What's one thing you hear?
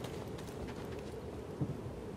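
Footsteps clank on a metal ramp.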